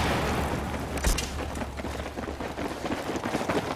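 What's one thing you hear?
Soldiers' boots thud as they run.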